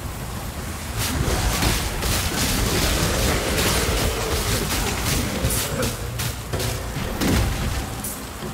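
Magic spells crackle and burst with electric zaps.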